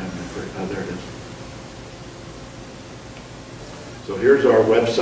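An elderly man speaks calmly into a microphone over an online call.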